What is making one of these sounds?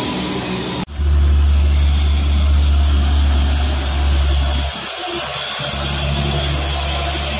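A second truck engine drones heavily close by.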